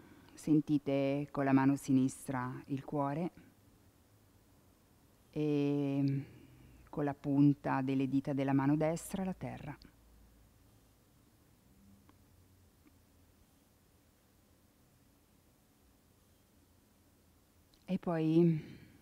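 A woman speaks calmly and softly close to a microphone.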